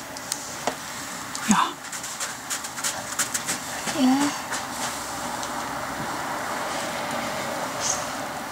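A firework fuse fizzes and sputters outdoors.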